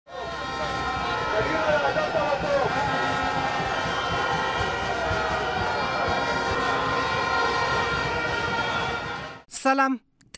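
A large crowd shouts and chants outdoors.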